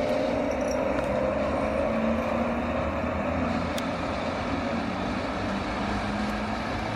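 Steel wheels rumble and clack on the rails.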